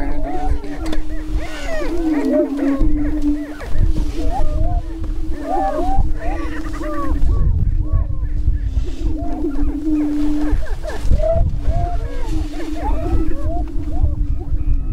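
Prairie chickens cackle and whoop in quick, rising calls.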